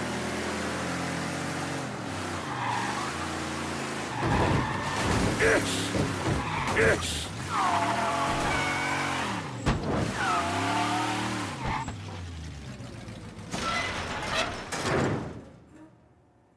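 A powerful car engine revs and roars, rising and falling.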